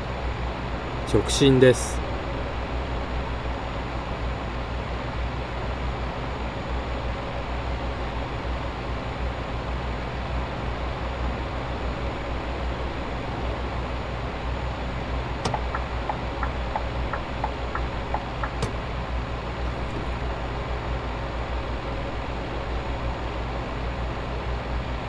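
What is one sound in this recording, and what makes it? A diesel truck engine drones while cruising on a motorway.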